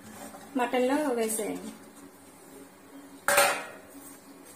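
A metal lid clanks against a pot.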